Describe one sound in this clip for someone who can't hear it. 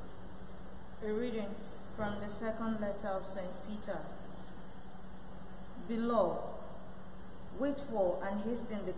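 A woman reads aloud calmly into a microphone, heard through loudspeakers in an echoing room.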